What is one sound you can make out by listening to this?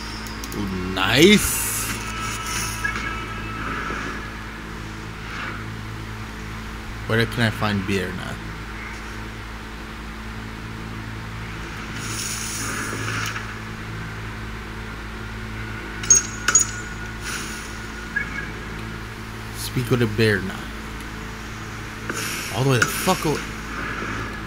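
A man speaks briefly and casually into a nearby microphone.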